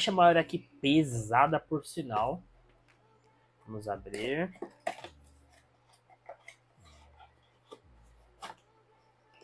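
A cardboard box rustles and scrapes as hands open it.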